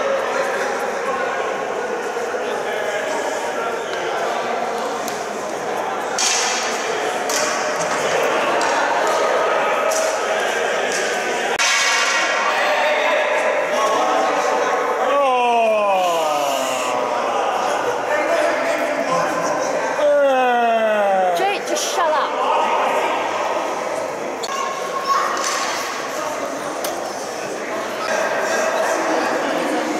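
Young men talk and call out to each other in a large echoing arena.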